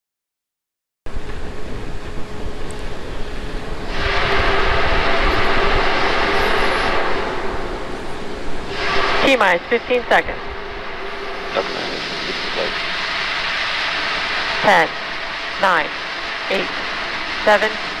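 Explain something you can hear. Gas vents from a rocket with a steady hiss.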